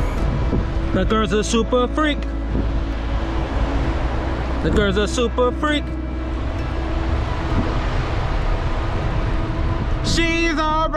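A man speaks animatedly close to the microphone.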